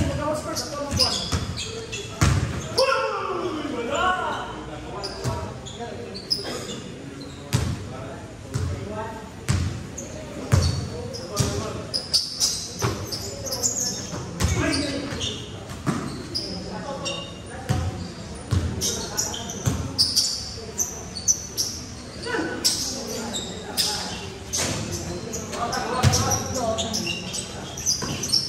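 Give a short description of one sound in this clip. A basketball bounces repeatedly on a hard court in a large echoing hall.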